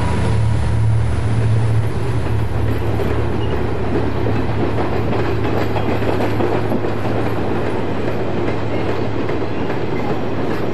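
A long freight train rumbles past with wagons clattering on the rails.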